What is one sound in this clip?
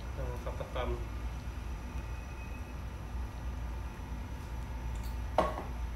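Liquid pours into a pan of simmering food.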